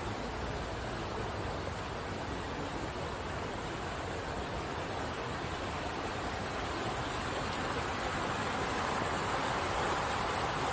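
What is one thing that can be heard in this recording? Water trickles over stones nearby and grows louder.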